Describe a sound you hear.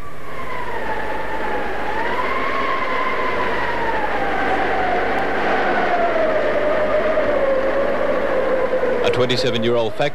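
Strong wind howls and moans outdoors in a storm.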